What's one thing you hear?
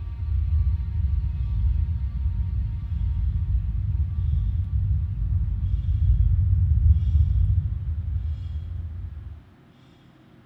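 A spacecraft engine rumbles deeply and loudly, then cuts out.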